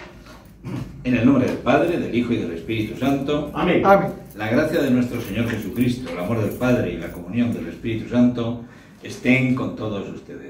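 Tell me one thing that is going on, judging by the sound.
An elderly man speaks calmly and steadily, as if reciting.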